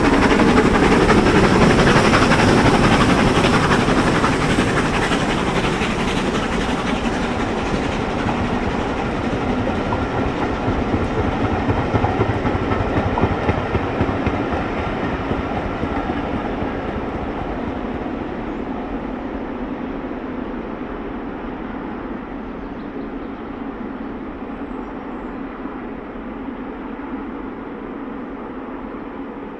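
A steam locomotive chuffs steadily in the distance and slowly fades.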